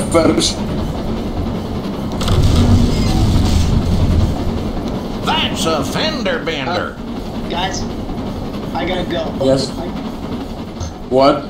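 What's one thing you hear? A steam locomotive rolls along the rails.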